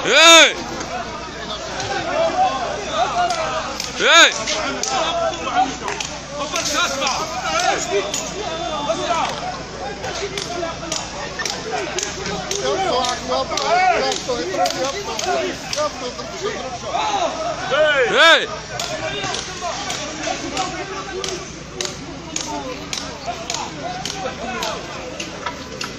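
A crowd of men shouts and talks excitedly outdoors.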